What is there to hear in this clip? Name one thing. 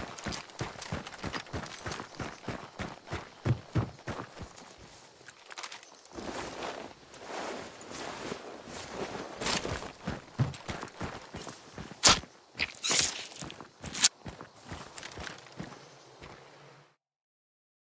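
Footsteps crunch quickly over grass and dirt.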